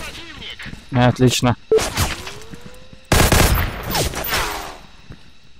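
Gunshots fire in short, quick bursts.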